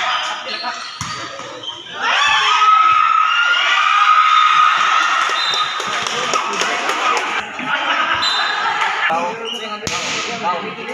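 A volleyball thumps against hands.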